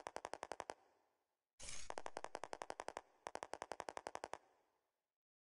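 Rapid, even electronic blips tick in quick bursts.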